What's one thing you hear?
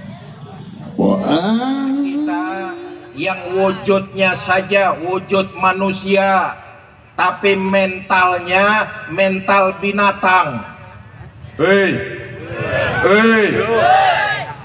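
A man talks loudly and with animation through a microphone over loudspeakers.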